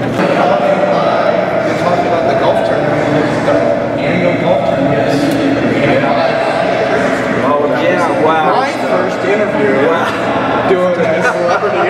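An elderly man talks with animation into a microphone.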